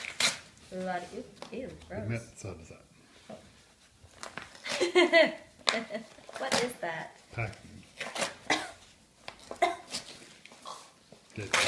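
Paper crinkles and tears as a padded envelope is ripped open.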